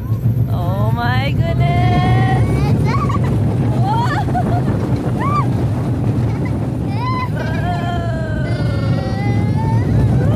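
Young riders scream and whoop excitedly on a ride.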